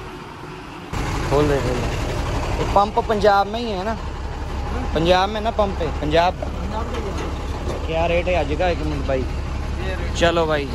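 A young man speaks nearby in a lively voice.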